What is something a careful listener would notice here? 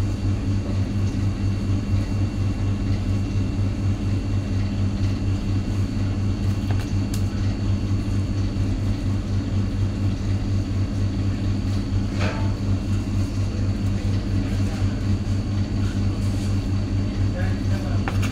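A knife slices through raw meat.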